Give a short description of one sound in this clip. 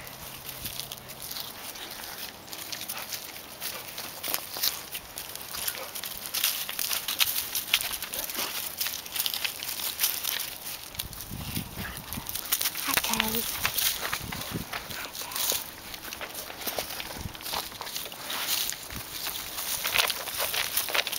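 Dry leaves rustle and crunch under the paws of dogs walking about.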